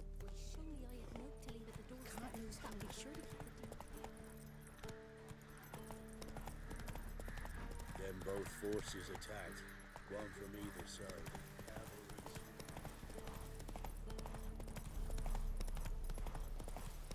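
A horse gallops, its hooves thudding on a dirt path.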